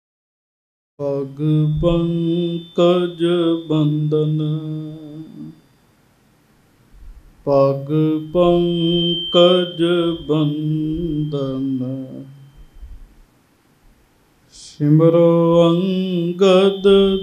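A man chants slowly into a microphone.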